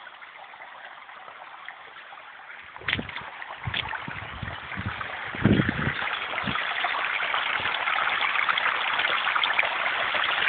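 A shallow stream trickles and babbles over stones.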